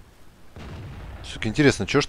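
A tank cannon fires with a sharp blast.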